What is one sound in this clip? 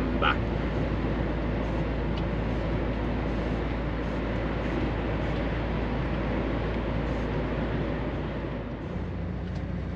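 A vehicle engine rumbles steadily while driving on a road.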